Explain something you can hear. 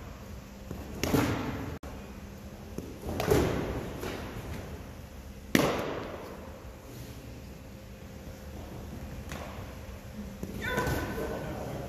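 A player lands with a thud on a padded mat.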